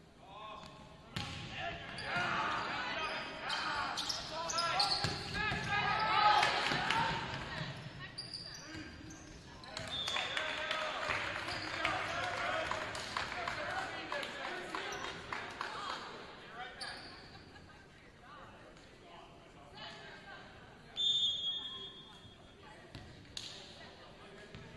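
A volleyball thumps as it is hit.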